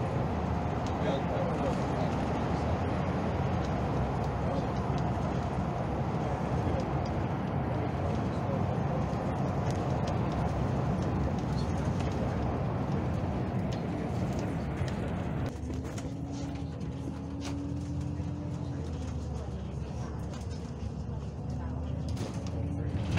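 Tyres rumble and roar steadily on a road from inside a moving vehicle.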